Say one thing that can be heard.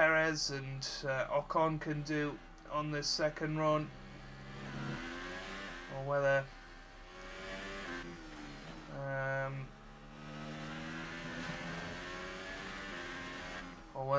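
A racing car engine screams at high revs and shifts up through the gears.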